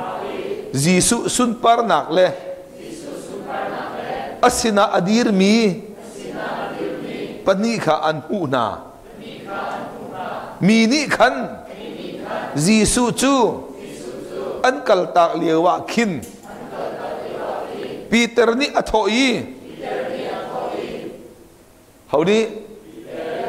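A middle-aged man speaks calmly through a microphone in an echoing room.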